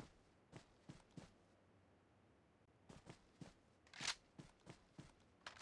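Footsteps crunch through grass at a steady pace.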